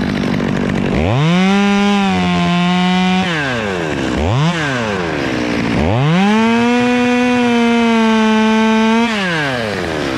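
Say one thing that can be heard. A chainsaw revs loudly in short bursts, close by.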